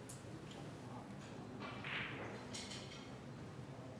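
Snooker balls click sharply against each other as the pack breaks.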